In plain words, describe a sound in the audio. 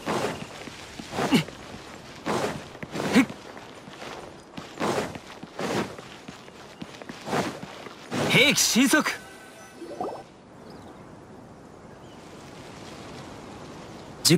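Footsteps run quickly over sand and stone steps.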